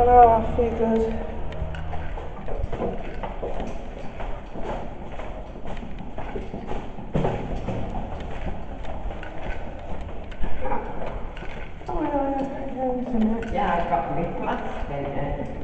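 Footsteps echo along a hard corridor floor.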